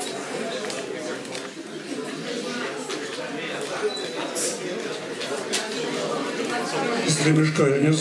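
An elderly man speaks calmly through a microphone in an echoing room.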